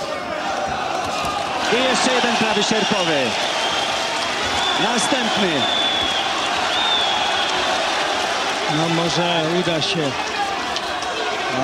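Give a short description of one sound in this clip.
A large crowd roars and cheers in an echoing hall.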